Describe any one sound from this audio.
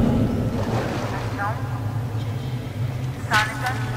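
A man's voice calls out through a phone.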